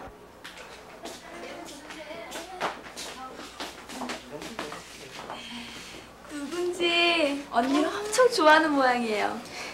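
Several young people laugh and chatter together.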